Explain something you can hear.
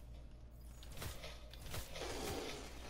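Gunshots ring out sharply.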